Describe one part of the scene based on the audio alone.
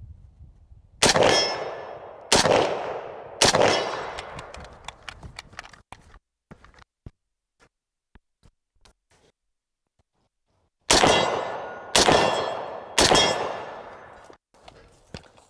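A shotgun fires loud blasts that echo outdoors.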